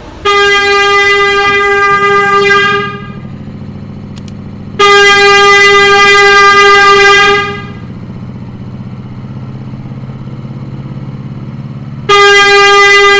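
A train's motor hums low and steadily.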